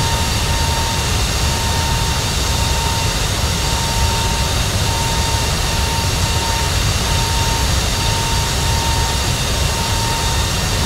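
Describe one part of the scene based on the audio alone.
The jet engines of a twin-engine airliner roar steadily at cruise.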